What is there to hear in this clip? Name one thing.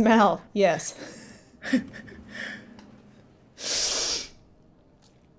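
A young woman laughs through a microphone.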